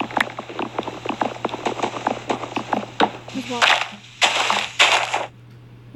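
Blocks crunch and crack as they are broken.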